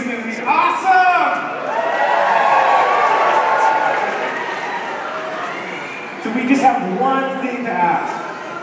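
A rock band plays loudly in a large echoing hall.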